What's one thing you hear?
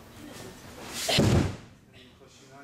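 A body lands with a heavy thud on a mat.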